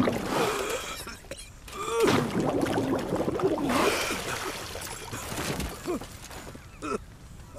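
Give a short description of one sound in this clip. An elderly man groans and cries out in pain.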